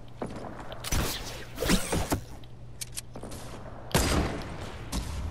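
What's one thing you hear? A rifle fires with sharp cracks a few times.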